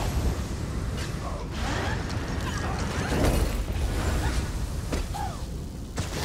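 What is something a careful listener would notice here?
Fire bursts and crackles with spell blasts.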